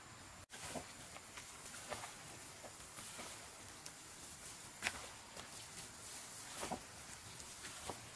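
A plastic glove rustles and crinkles.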